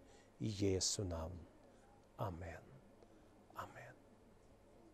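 A middle-aged man speaks calmly and haltingly into a close microphone.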